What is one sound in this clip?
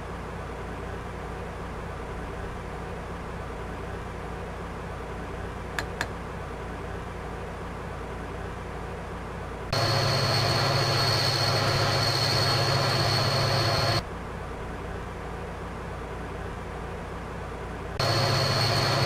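A train cab hums quietly and steadily.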